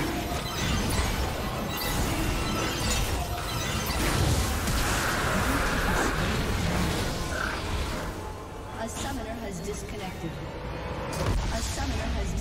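Game spell effects crackle and boom in a fight.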